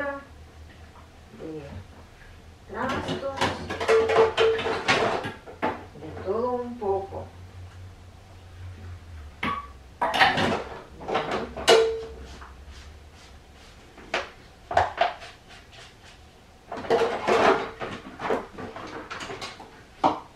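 Dishes clink and clatter in a sink nearby.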